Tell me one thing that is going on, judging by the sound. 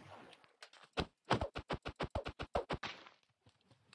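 Rapid wooden knocks strike a boat until it breaks.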